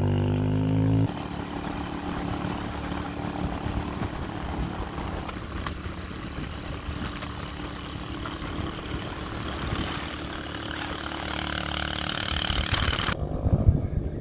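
A vehicle drives along a paved road with a steady rush of road and wind noise.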